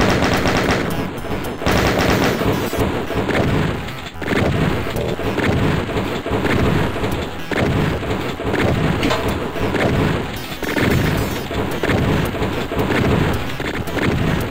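A rapid-firing gun blasts out loud, quick bursts of shots.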